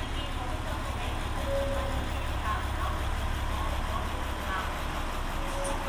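A train rumbles slowly along the platform.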